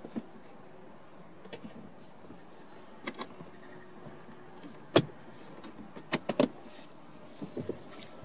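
Plastic clicks and knocks as a hand handles a car's gear lever and console.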